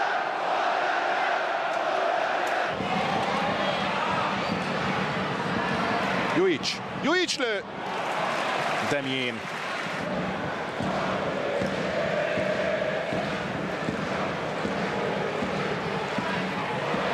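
A stadium crowd roars and chants.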